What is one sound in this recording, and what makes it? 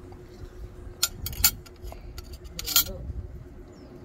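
A metal fork clinks against a plate.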